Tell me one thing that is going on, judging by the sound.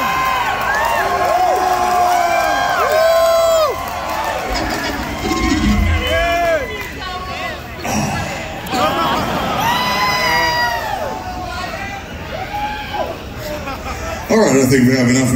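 A crowd cheers and chants loudly in a large hall.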